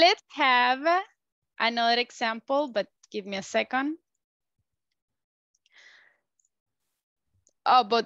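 A woman speaks calmly through an online call, in short phrases with pauses.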